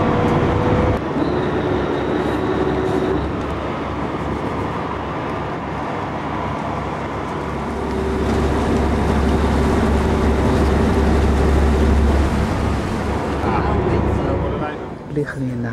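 A boat engine rumbles steadily and loudly.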